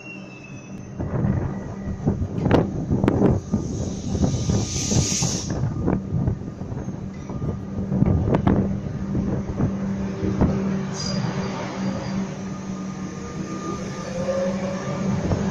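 An electric train pulls away, its motor humming steadily.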